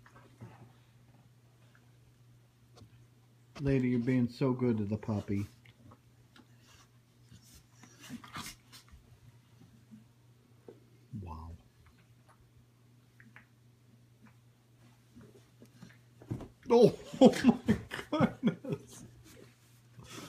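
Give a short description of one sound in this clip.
Dog paws scuffle on a carpet.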